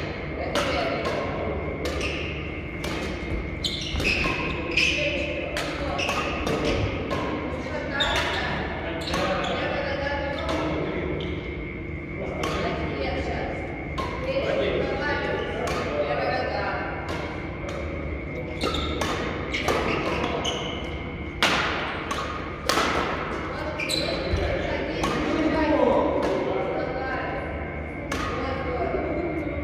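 Shoes squeak and thud on the court floor.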